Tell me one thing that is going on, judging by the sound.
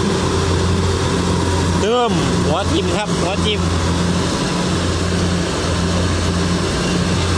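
Crop stalks rustle and crunch as a combine harvester cuts through them.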